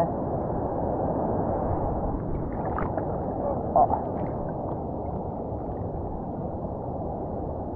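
Water laps and sloshes close by.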